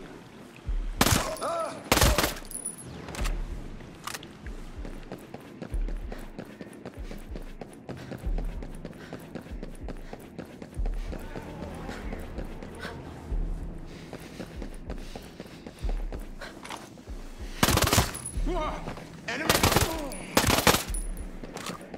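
A rifle fires single shots.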